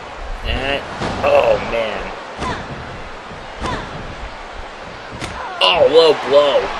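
Heavy thuds of bodies slamming onto a mat.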